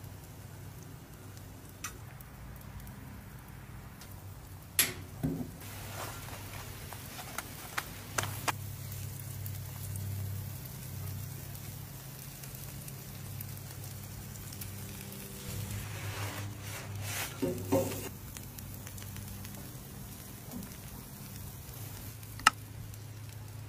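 Metal spatulas scrape and clack on a hot griddle.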